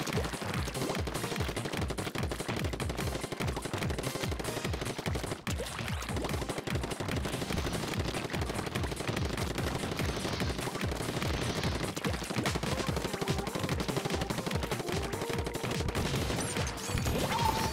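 Ink squirts and splatters in quick bursts.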